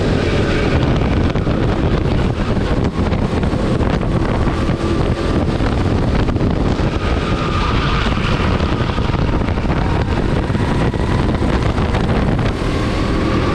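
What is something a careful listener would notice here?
Wind buffets loudly past the driver.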